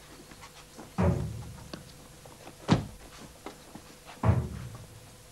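Men scuffle and shove with heavy thuds.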